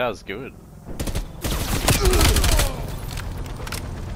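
A gun fires a quick burst of loud shots.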